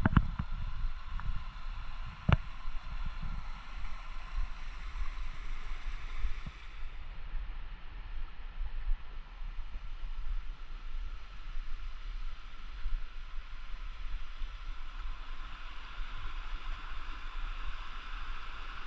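A stream rushes and splashes over rocks nearby.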